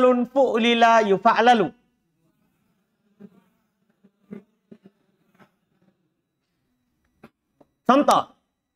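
A man reads aloud, close to a microphone.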